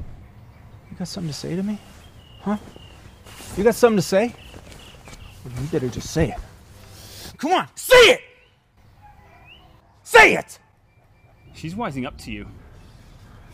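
An older man speaks firmly and sternly nearby.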